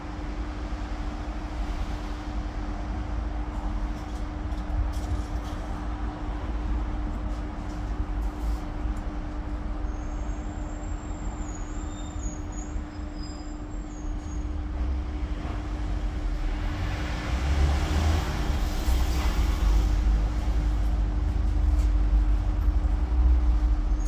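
A bus interior rattles and creaks as it moves.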